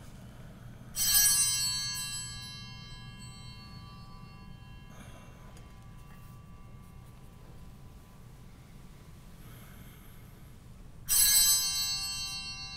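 A small hand bell rings brightly and rings out in a large echoing room.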